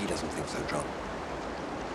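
A man speaks quietly and calmly nearby.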